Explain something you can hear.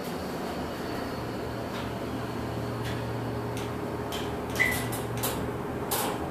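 An elevator motor hums steadily as the car travels.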